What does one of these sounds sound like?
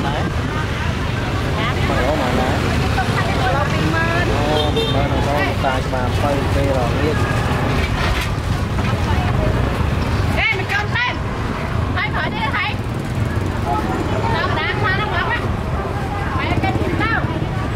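A busy crowd chatters all around outdoors.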